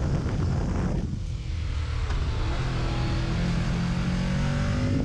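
A motorcycle engine hums and rises in pitch as it rides along.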